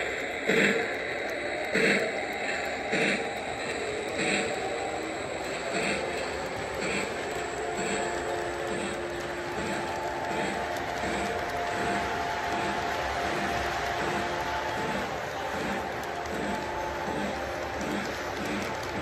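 Model train wheels click rhythmically over rail joints.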